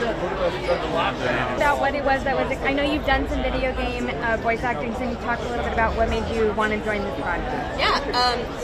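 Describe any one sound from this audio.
A young woman speaks calmly into a microphone up close.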